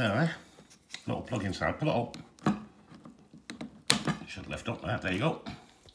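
Plastic parts click as they are handled close by.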